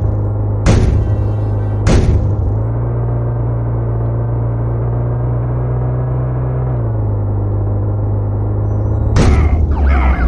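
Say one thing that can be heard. A vehicle engine hums steadily and shifts pitch.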